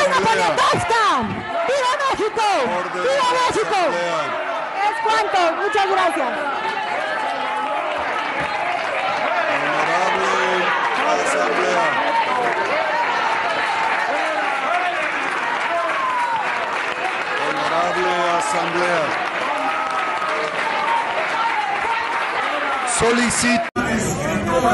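A large crowd chants and cheers loudly in an echoing hall.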